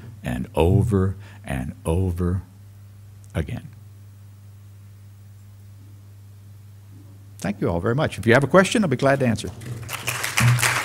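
An older man speaks into a microphone, pausing between phrases.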